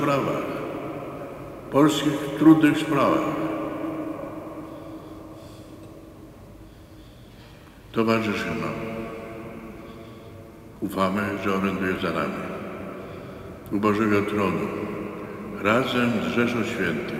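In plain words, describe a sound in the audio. An elderly man reads out slowly through a microphone, with long pauses echoing in a large hall.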